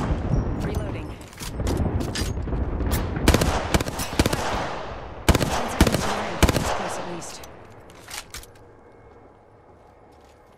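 A weapon reloads with metallic clicks.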